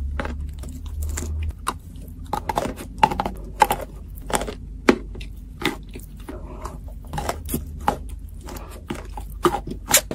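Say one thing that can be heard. A woman chews crunchy food close to a microphone.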